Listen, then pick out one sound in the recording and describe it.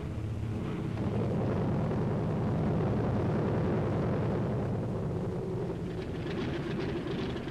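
A plane's engines roar as it taxis close by.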